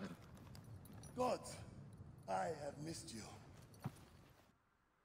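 A man calls out gladly from a distance.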